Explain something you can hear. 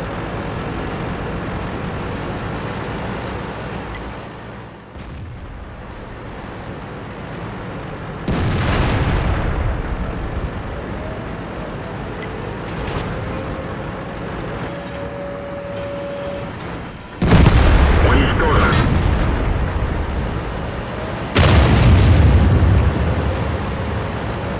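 A heavy tank's engine rumbles as it drives.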